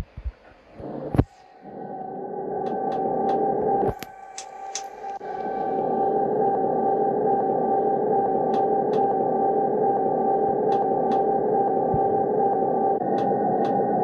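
A train engine hums steadily as the train rolls along.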